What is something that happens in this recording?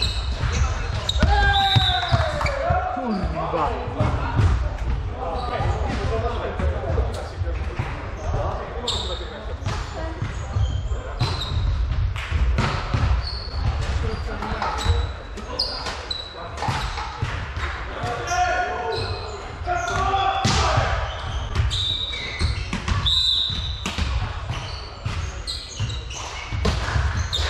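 Players' shoes squeak on a hard floor.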